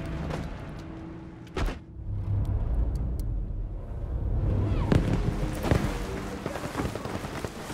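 Stormy wind roars and gusts.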